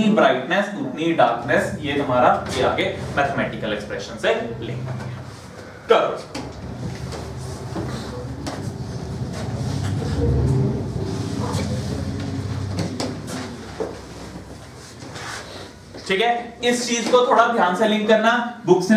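A young man lectures with animation, close by.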